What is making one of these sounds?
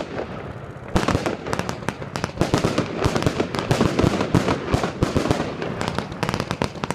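Fireworks crackle rapidly after bursting.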